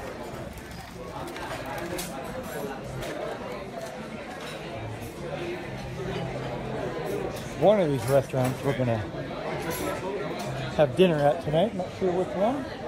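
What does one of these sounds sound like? A crowd of men and women chat and murmur outdoors.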